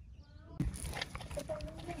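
A plastic bag rustles softly.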